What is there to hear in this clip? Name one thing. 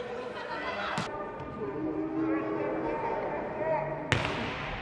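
A volleyball is struck hard with a loud smack in an echoing hall.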